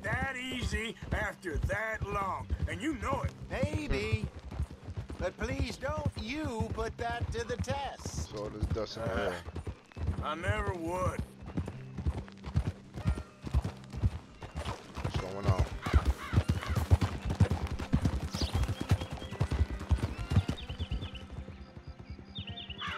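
Horse hooves clop steadily on a dirt trail.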